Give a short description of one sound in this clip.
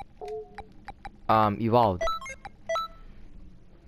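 Short electronic menu beeps chime.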